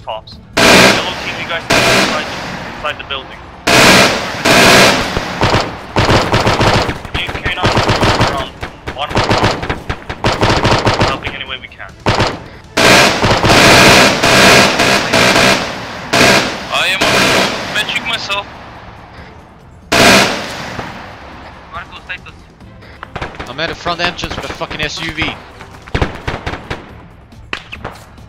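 A machine gun fires loud rapid bursts outdoors, echoing off nearby buildings.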